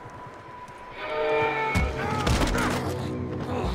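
A man grunts and shouts while fighting.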